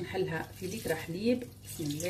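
Milk pours into a metal pot.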